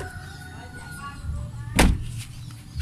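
A car door handle clicks.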